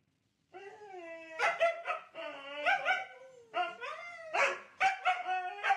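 A husky howls and yowls close by in long, wavering, talking cries.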